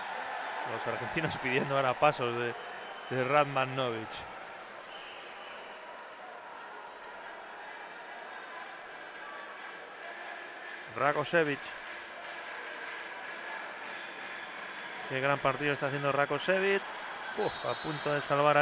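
A large crowd murmurs steadily in a big echoing arena.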